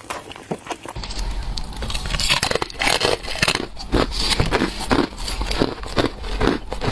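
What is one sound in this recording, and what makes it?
A woman licks and sucks on ice close to a microphone.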